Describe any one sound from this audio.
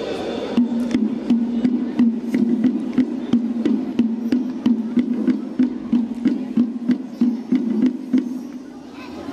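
A large drum beats in a steady, strong rhythm outdoors.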